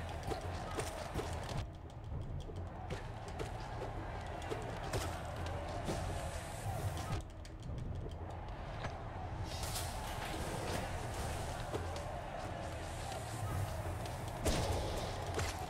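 Game sound effects of slashes and impacts clash rapidly.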